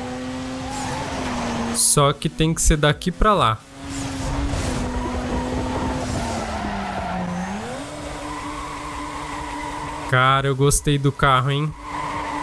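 A car engine hums and revs steadily, shifting pitch as it changes gear.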